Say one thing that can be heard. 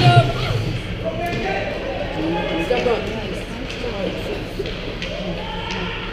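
Skate blades scrape across the ice close by.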